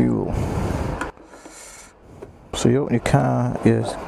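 A metal fuel cap clicks as it is unscrewed.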